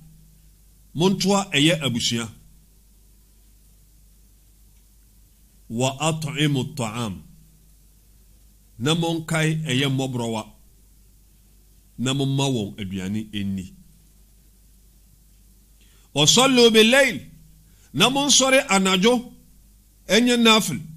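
A man speaks into a close microphone in short, measured phrases with pauses between them.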